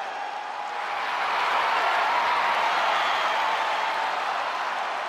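A large arena crowd cheers and roars steadily.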